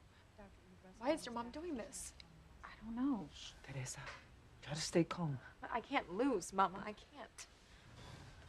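A woman speaks with emotion, heard close by.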